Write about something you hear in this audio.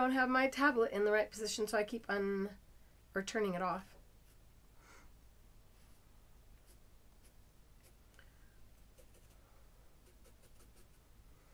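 A felt pen scratches softly on paper.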